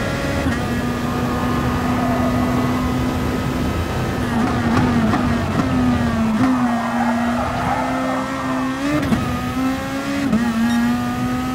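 A racing car engine roars steadily at high revs, shifting pitch as it changes gear.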